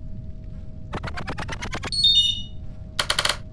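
A rising electronic chime plays.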